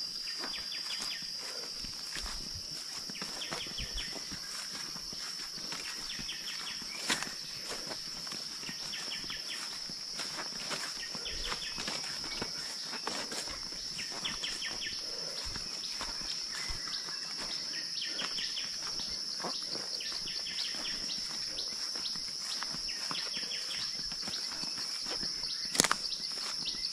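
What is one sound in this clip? Footsteps crunch and rustle through leafy undergrowth.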